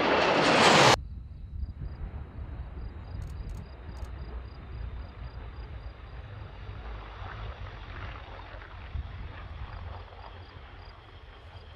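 A jet engine whines faintly in the distance.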